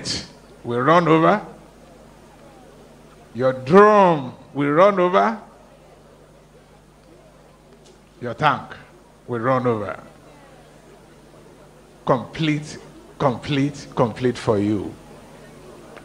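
An elderly man speaks with emphasis into a microphone, heard through loudspeakers, pausing between phrases.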